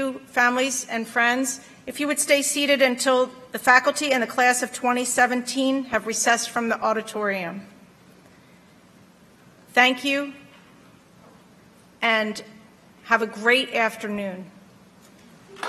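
A woman speaks steadily through a microphone and loudspeakers in a large hall.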